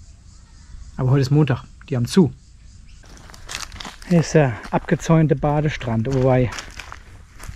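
A middle-aged man speaks calmly and close by, outdoors.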